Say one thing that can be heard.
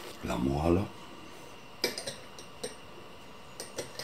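A knife clinks against a plate.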